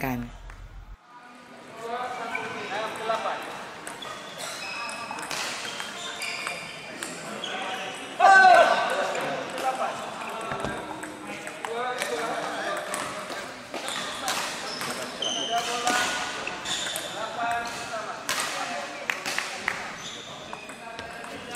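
Table tennis balls click against paddles and tables in an echoing hall.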